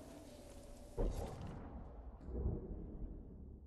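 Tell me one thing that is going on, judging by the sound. Menu clicks sound sharply.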